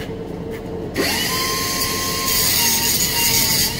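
An angle grinder whirs up to speed and grinds metal loudly.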